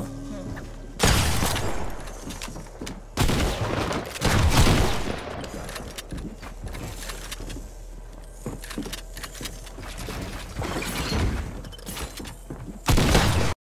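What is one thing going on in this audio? Video game building noises clatter in loud bursts.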